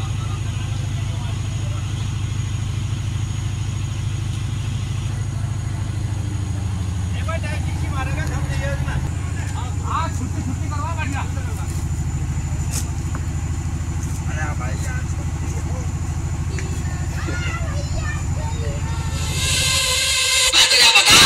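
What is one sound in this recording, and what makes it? A large loudspeaker plays a deep, steady bass throb.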